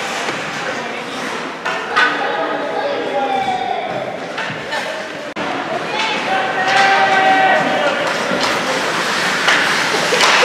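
Ice hockey skates scrape and carve across ice in an echoing rink.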